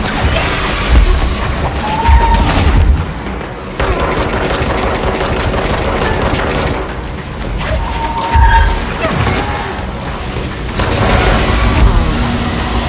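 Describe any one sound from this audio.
Objects explode and debris crashes.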